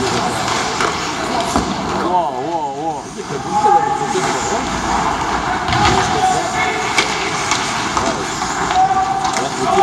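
Skates scrape and hiss across the ice in a large echoing arena.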